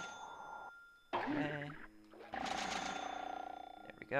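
Bright chiming game sounds ring out as coins are picked up.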